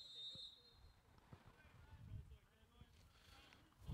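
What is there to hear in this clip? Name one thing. Young men shout and cheer in the distance outdoors.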